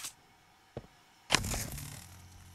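A heavy battery clunks into a socket.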